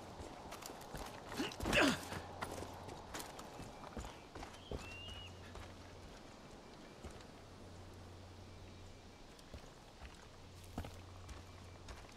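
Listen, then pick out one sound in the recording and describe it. Footsteps scrape and crunch on rocky ground.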